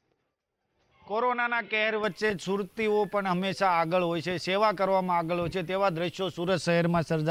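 A young man speaks clearly into a microphone.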